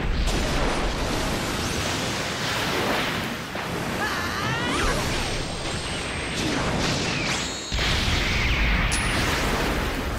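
Rushing water surges and roars loudly.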